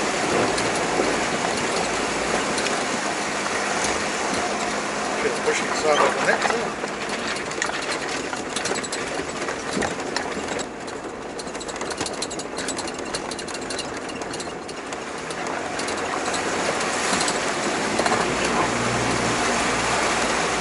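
Tyres crunch and rumble over loose stones.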